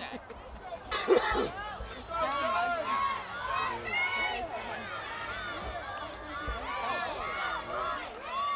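Young players cheer and shout outdoors as they celebrate.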